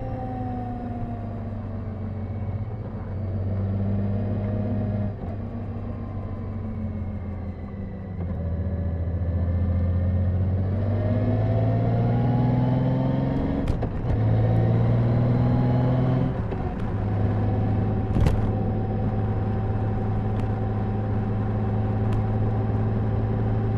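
Wind rushes past the motorcycle.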